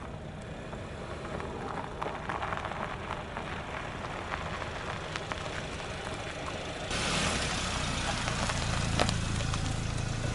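A car engine hums as the car drives slowly over rough ground.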